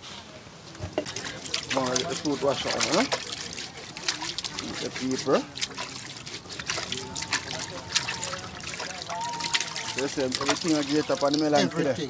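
Water sloshes and splashes as a pineapple is scrubbed in a pot.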